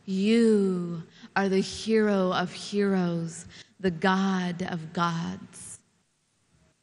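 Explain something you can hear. A young woman recites expressively into a microphone.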